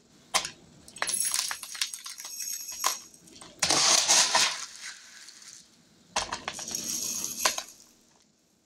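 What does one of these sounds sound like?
Dry pasta pours with a hissing rattle into a glass jar.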